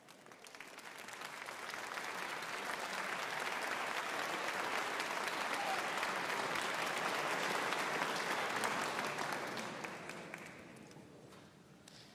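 An audience applauds in a large hall, swelling and then fading.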